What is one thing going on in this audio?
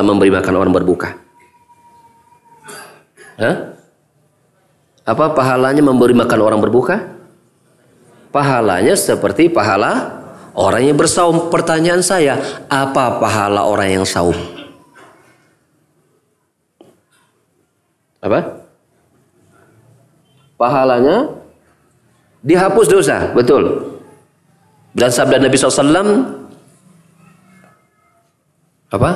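A man speaks animatedly into a close microphone, sometimes shouting, with pauses between phrases.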